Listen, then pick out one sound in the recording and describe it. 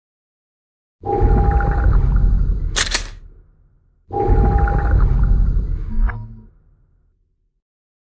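A deep electronic whoosh swells and slowly fades, twice.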